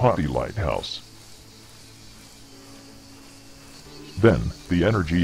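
A young man talks into a close microphone in short bursts.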